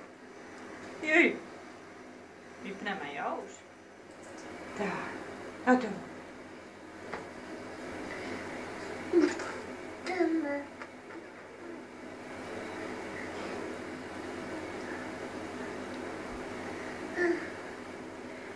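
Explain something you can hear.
A baby babbles and coos nearby.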